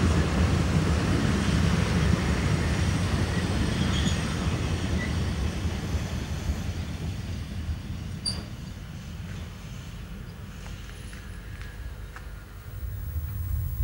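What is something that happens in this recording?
A steam locomotive hisses steam nearby.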